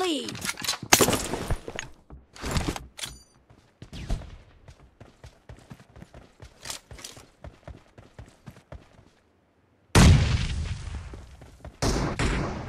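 Quick footsteps run over gravel and grass.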